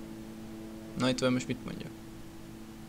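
A man speaks briefly in a low voice.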